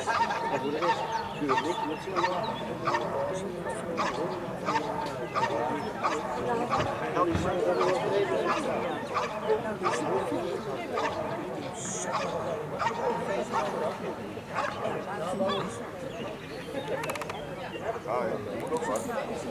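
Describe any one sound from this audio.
A dog barks sharply and repeatedly, outdoors.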